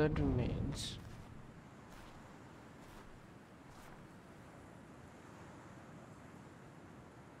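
Wind blows softly through bare trees outdoors.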